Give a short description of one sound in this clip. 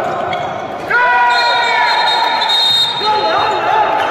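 A referee's whistle blows sharply in a large echoing hall.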